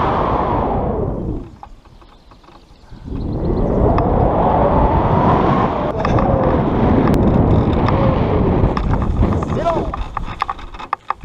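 Wind roars loudly past the microphone.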